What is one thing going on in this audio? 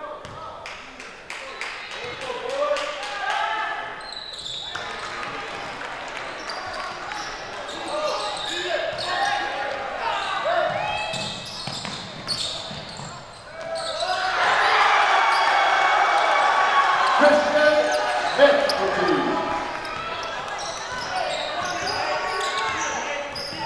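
Sneakers squeak sharply on a hardwood floor in an echoing gym.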